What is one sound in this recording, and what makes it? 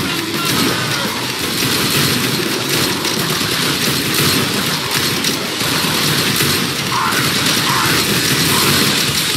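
Guns fire in rapid, rattling bursts.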